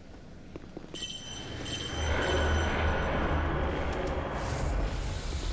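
A magic spell shimmers and chimes.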